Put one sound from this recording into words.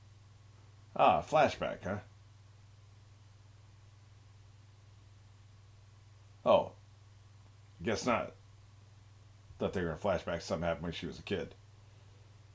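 An elderly man talks in short bursts, close to a microphone.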